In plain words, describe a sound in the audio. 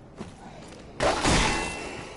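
A sword slashes and strikes with a heavy hit.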